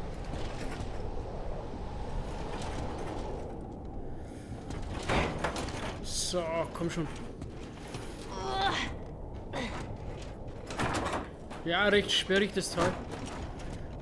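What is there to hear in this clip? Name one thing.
A metal cart rattles as it is pushed over a hard floor.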